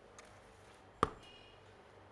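A glass knocks against a wooden table.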